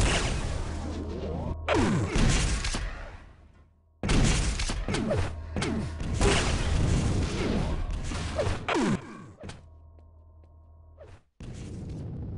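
Video game gunfire and explosions boom in rapid bursts.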